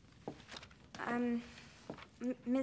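A young woman speaks clearly in an echoing room.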